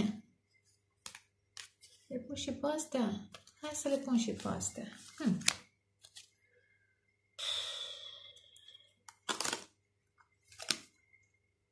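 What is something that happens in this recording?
Cards riffle and slap softly as they are shuffled by hand.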